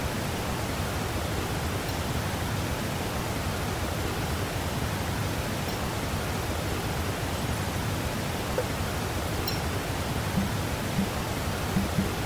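Shallow water rushes steadily.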